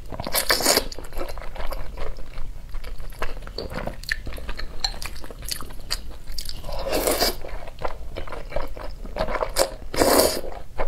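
A young woman slurps noodles loudly, close to a microphone.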